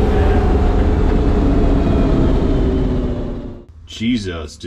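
A car engine roars loudly from inside the cabin.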